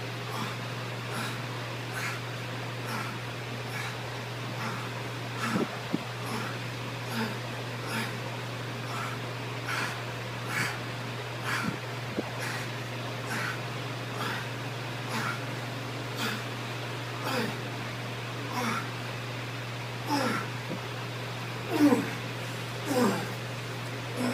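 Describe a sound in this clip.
A man breathes out sharply with each lift, grunting harder as he tires.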